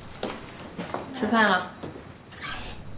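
A middle-aged woman calls out calmly.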